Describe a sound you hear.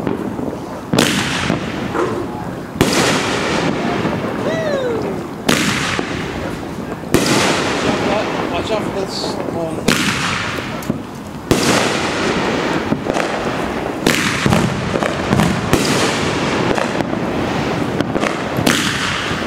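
Aerial firework shells burst with sharp booms that echo across the open air.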